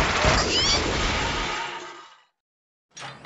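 A game explosion bursts and rumbles.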